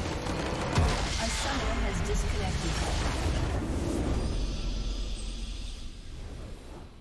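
A crystal structure shatters with a loud crash and a rumbling blast.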